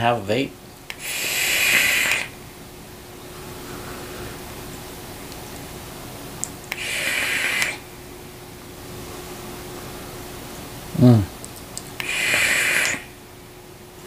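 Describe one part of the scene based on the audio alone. A man draws hard on a vaporizer with a loud hissing crackle.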